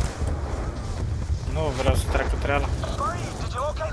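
A rifle fires a few quick shots.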